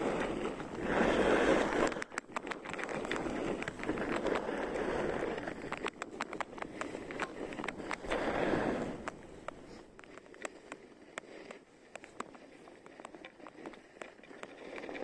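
Skis hiss and scrape over packed snow.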